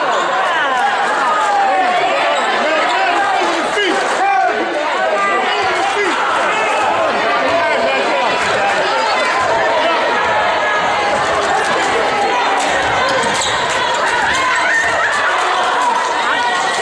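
A crowd of spectators chatters and cheers loudly in a large echoing gym.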